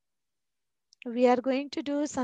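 A woman speaks clearly and calmly into a close headset microphone.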